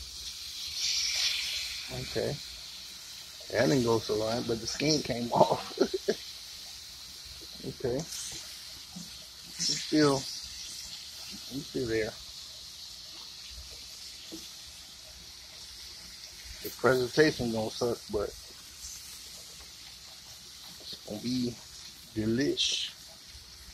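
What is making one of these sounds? Meat sizzles softly on a hot grill.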